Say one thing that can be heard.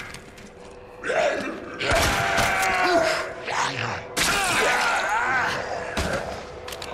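A zombie groans and snarls up close.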